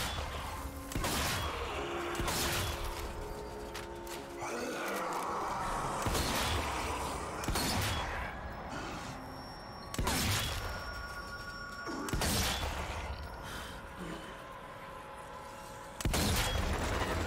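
A rifle fires loud single shots that ring out, a few seconds apart.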